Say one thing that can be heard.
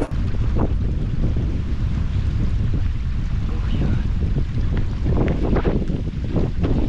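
Wind rumbles against a microphone outdoors.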